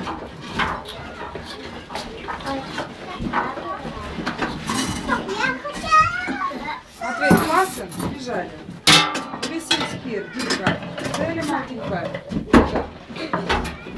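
Metal scrapes and clanks in a tub.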